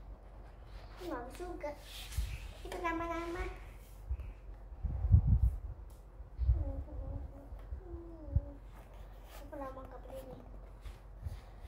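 A young girl speaks softly nearby.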